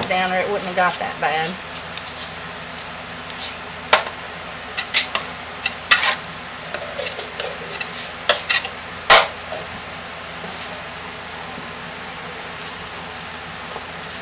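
A wooden spoon scrapes and knocks against a plastic tub.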